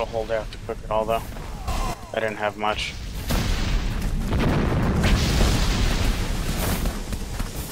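Electric magic crackles and whooshes in bursts.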